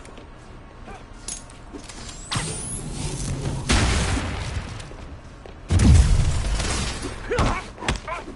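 Electricity crackles and bursts loudly.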